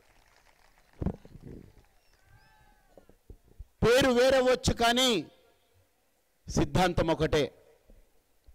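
A man speaks forcefully into a microphone, heard through loudspeakers.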